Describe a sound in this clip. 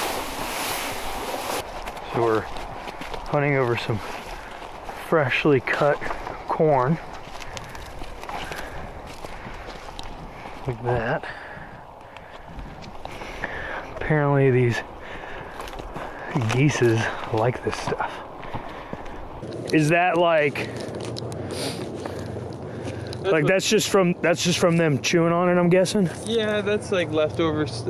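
Footsteps crunch over dry stalks and leaves.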